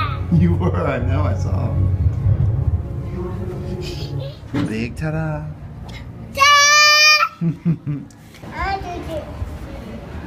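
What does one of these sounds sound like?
A toddler girl babbles and calls out in short bursts.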